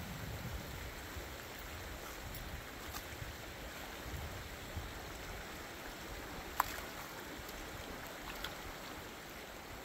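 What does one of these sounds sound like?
Hands splash and scoop in shallow water.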